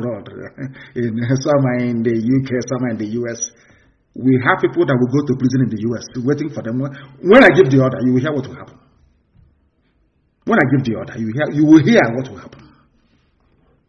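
A man speaks calmly and firmly into a microphone.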